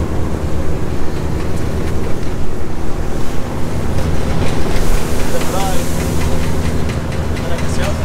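A boat engine drones steadily and low.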